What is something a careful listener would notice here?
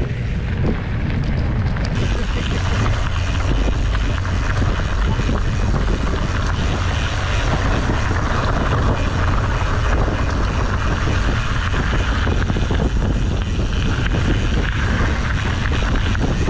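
Wind rumbles loudly across the microphone outdoors.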